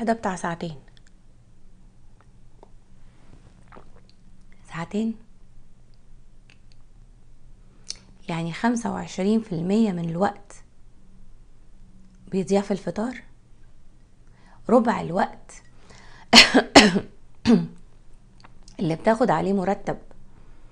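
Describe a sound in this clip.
A middle-aged woman speaks calmly and close to a microphone, with pauses.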